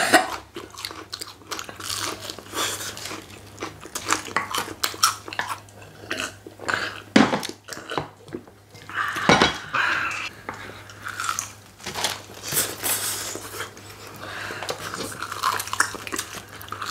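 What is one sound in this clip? People chew crunchy fried chicken loudly up close.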